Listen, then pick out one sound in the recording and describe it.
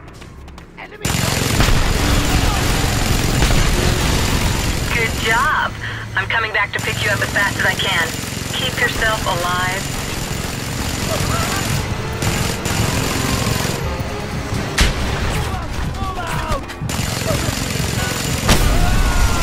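A heavy machine gun fires in rapid, rattling bursts.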